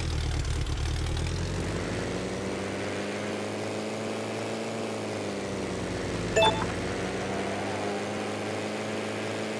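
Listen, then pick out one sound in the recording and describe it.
A small propeller plane engine drones steadily.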